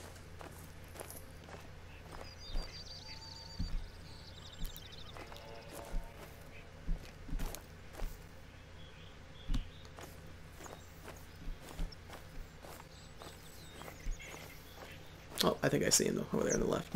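Footsteps crunch through dry grass at a steady walking pace.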